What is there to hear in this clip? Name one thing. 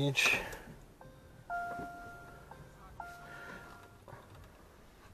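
A car's electronic chime beeps a few times.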